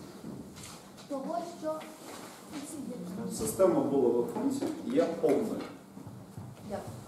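A man speaks calmly, a little way off, with some echo.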